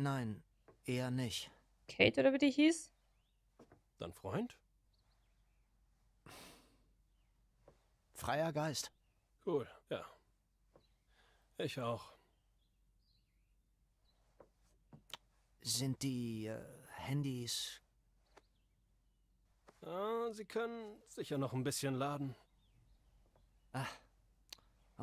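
A young man speaks quietly and calmly.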